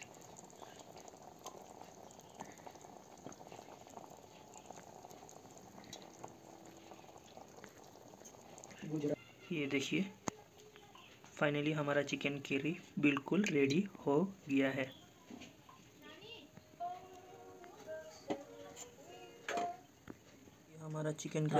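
Sauce simmers and bubbles softly in a pan.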